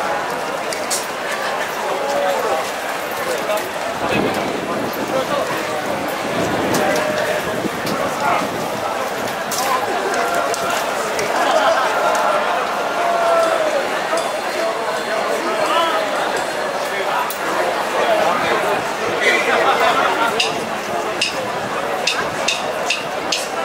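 A band plays upbeat music outdoors.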